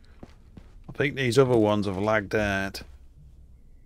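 An elderly man speaks with animation close to a microphone.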